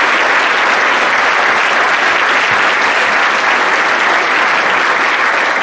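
A man claps his hands in a large echoing hall.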